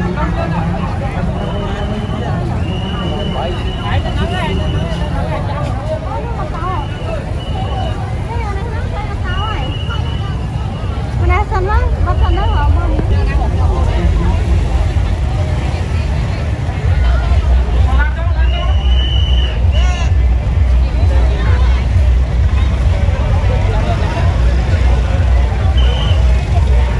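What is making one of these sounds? Motorbike engines rumble nearby.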